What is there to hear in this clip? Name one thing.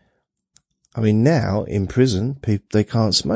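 A man speaks into a microphone close by.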